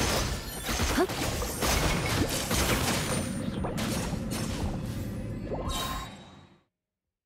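Video game combat effects blast and crackle rapidly.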